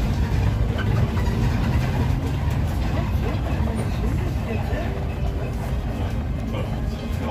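A bus engine rumbles steadily from inside the cabin.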